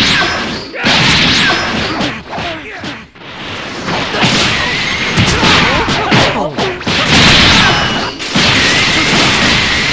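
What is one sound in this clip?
Punches and hits thud rapidly.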